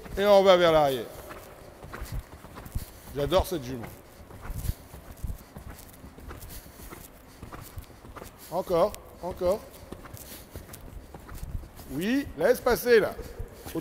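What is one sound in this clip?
A man calls out instructions loudly in a large echoing hall.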